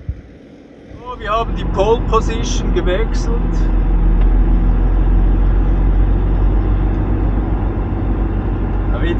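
A vehicle engine drones steadily while driving.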